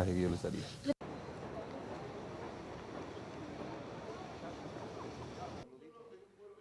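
People murmur faintly outdoors.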